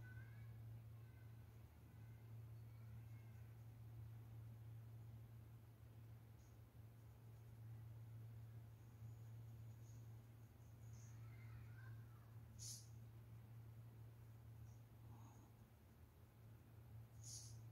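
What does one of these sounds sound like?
A paintbrush strokes softly across canvas.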